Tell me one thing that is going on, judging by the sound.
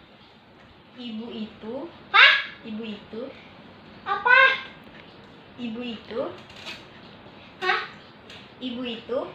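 A young girl talks with animation nearby.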